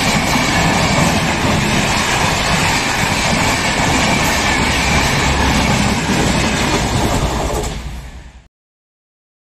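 A passenger train rumbles and clatters past loudly, then fades.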